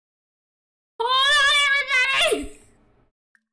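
A young woman calls out in a high, wavering voice close to a microphone.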